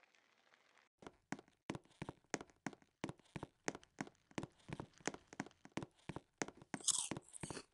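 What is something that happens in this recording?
Footsteps thud quickly and evenly on a wooden floor and stairs.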